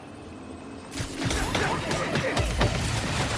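Blasts and thuds crack and boom in quick bursts.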